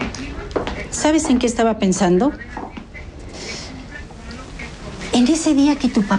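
An elderly woman speaks sternly, close by.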